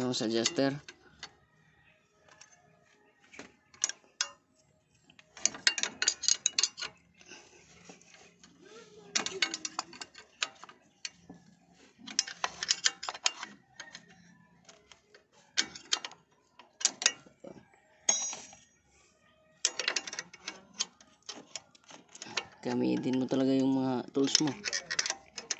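Plastic and metal parts click and rattle under a hand.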